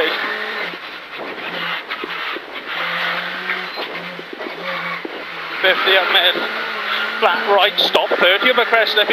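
A rally car engine roars and revs through gear changes.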